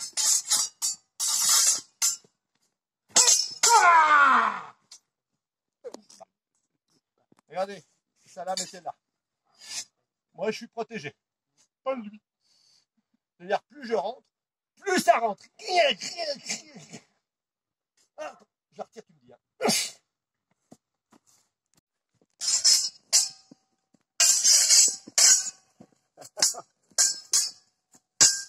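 Steel swords clash together.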